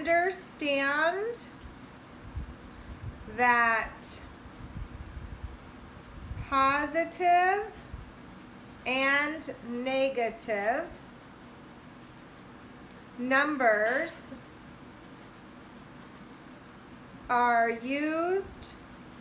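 A felt-tip marker squeaks and scratches across paper.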